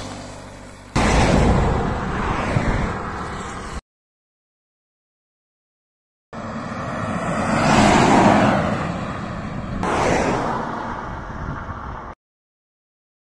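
A heavy truck passes by on an asphalt road.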